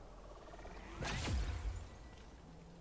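A sparkling magical burst whooshes and crackles.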